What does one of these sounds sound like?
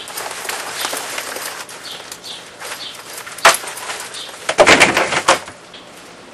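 A man handles a plastic bag with a rustle.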